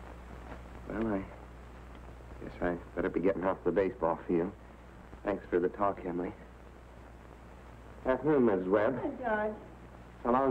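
A young man speaks warmly and with amusement.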